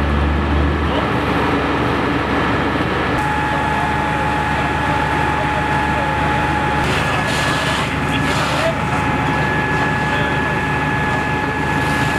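A fire hose sprays water.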